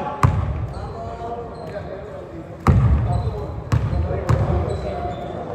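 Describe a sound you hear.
A basketball bounces on a hard floor, booming in a large echoing hall.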